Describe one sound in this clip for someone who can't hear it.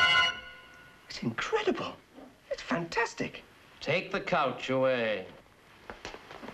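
A young man speaks in an astonished voice.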